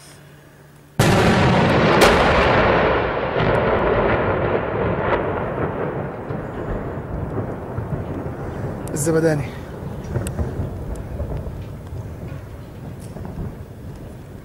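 A loud explosion booms nearby, then rumbles and echoes slowly away across the hills.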